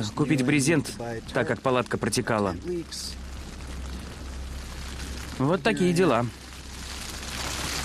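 Water drips from a tent's edge.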